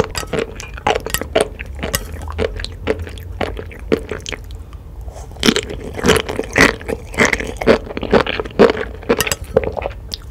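Chopsticks tap against a plate.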